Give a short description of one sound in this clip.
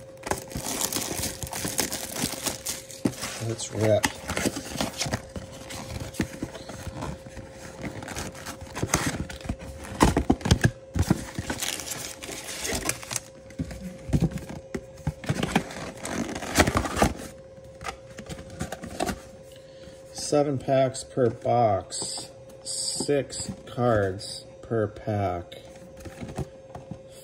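Cardboard packaging rustles and crinkles as hands open a box.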